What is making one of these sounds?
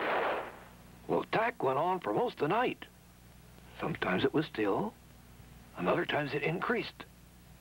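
A man speaks in a low voice, close by.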